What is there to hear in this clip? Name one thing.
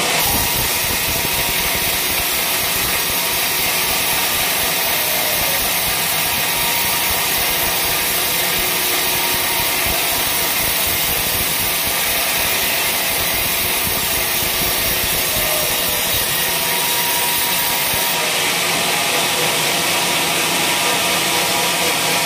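A sawmill motor hums loudly.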